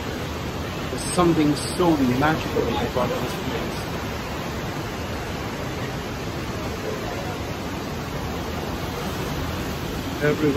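A middle-aged man speaks calmly close to the microphone.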